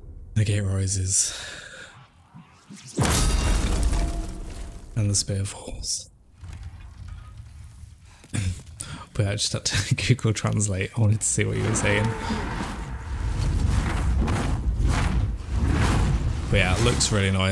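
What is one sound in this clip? A man talks with animation into a microphone, close up.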